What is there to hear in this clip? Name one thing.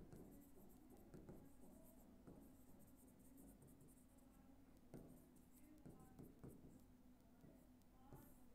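A pen taps and scratches faintly on a hard board.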